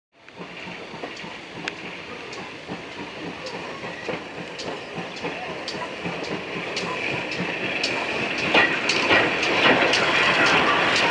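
Steam hisses from a locomotive.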